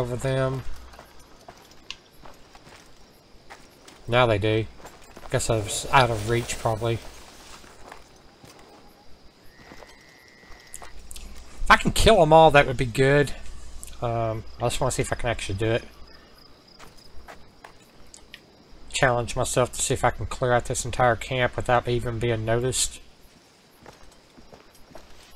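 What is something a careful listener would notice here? Soft footsteps rustle through grass.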